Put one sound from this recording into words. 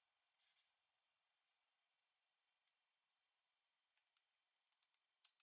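A craft knife scrapes and cuts through thin board with soft clicks.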